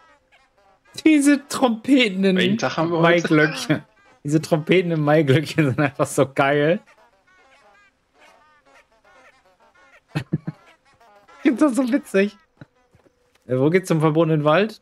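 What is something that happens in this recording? A young man talks and laughs with animation, close to a microphone.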